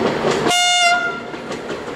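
A locomotive horn sounds briefly.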